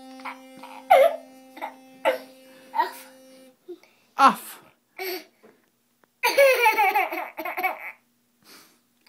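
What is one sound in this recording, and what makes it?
A toddler laughs and babbles close by.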